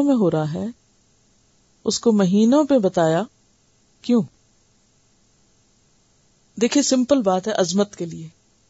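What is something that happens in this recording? A woman speaks calmly and closely into a microphone, in short phrases with pauses.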